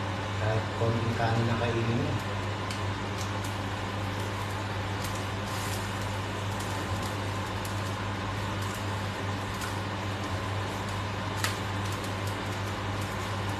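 Leaves of lettuce rustle as they are handled.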